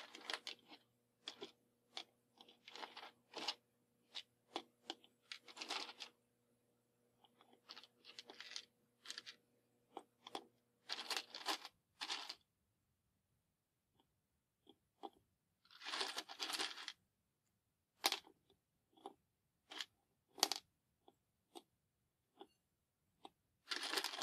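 Matchsticks tap lightly as they are set down one by one.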